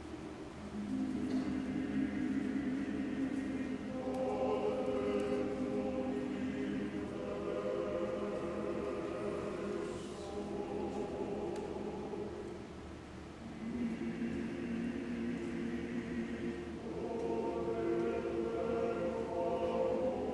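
A choir sings long, slow held notes in a large echoing hall.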